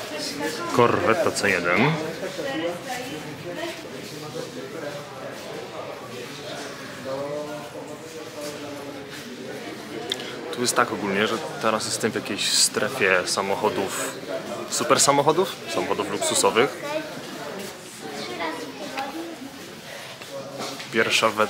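A young man talks close by, calmly and clearly.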